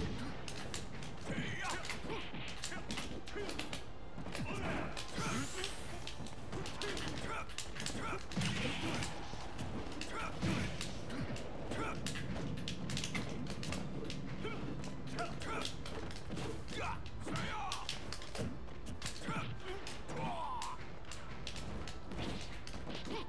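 Game hits and blows crack and thud rapidly.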